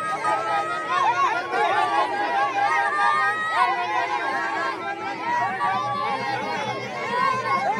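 A crowd of men shout and chant together outdoors.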